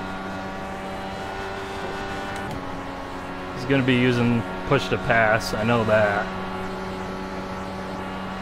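A racing car engine whines steadily at high speed.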